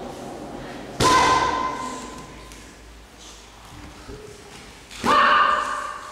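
A child's kick smacks into a handheld striking pad in an echoing hall.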